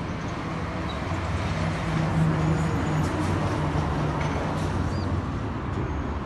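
A truck rumbles along a street below.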